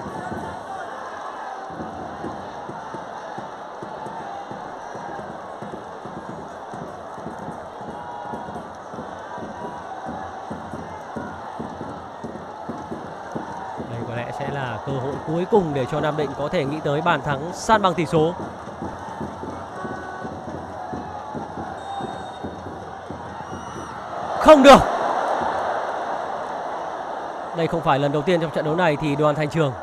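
A stadium crowd murmurs steadily in the open air.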